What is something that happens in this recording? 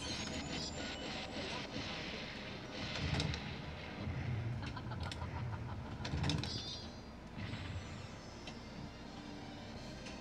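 A pinball game clicks and chimes as the ball bounces around.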